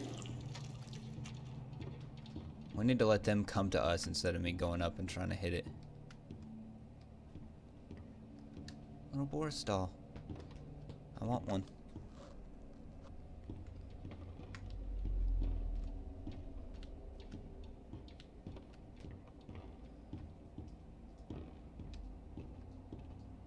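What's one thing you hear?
Footsteps tap steadily on wooden floorboards.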